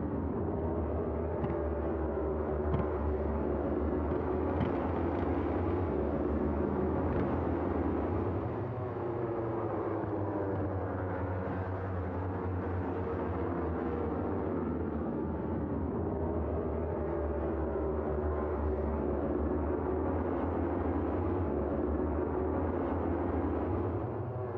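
Racing motorcycle engines scream past at full throttle.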